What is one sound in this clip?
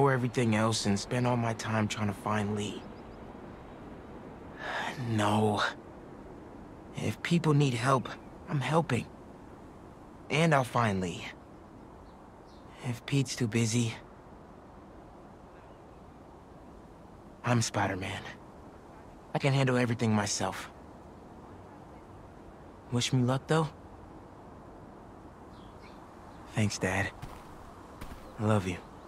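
A young man speaks quietly and sadly in short phrases, close by.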